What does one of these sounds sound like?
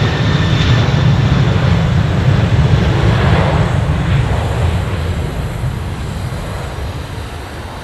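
A Boeing 737 jet airliner roars at takeoff thrust along a runway and lifts off.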